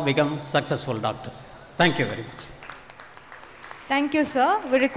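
An elderly man speaks calmly through a microphone and loudspeakers in a large hall.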